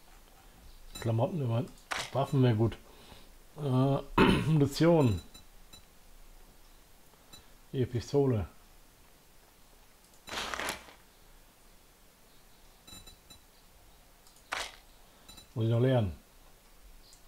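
A man talks calmly and casually into a close microphone, in short bursts.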